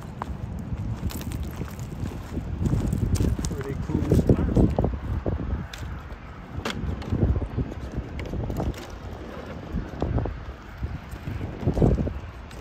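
Gravel crunches and pebbles clatter under small tyres.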